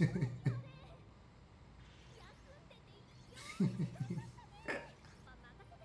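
A young man laughs heartily close to a microphone.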